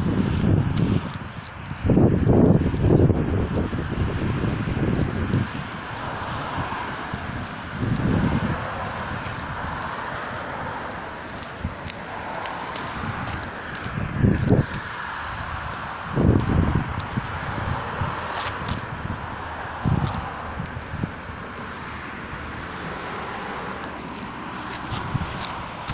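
Clothing rustles and scrapes close against the microphone.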